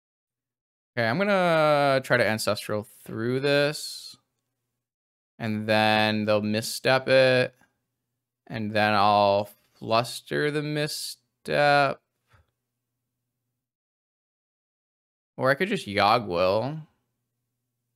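A young man speaks calmly and closely into a microphone, in short bursts with pauses.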